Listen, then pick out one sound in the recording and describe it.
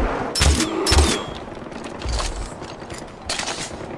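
A crossbow fires with a sharp twang.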